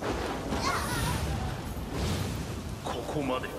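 Blades clash and strike in a fierce fight.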